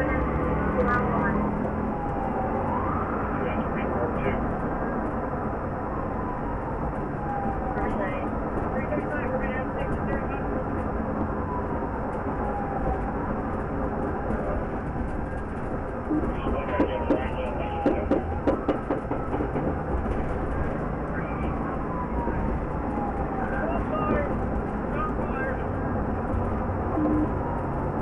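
Tyres roar steadily on a highway as a car drives at speed.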